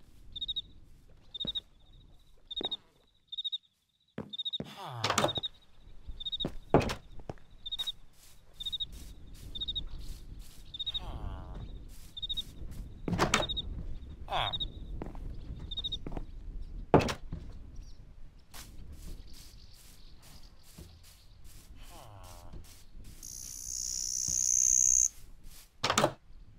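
Footsteps patter steadily across wood and grass.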